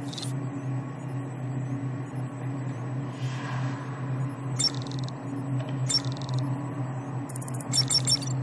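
A handheld electronic device beeps and chirps in short bursts.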